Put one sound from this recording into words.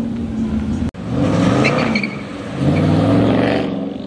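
A car engine revs up and growls.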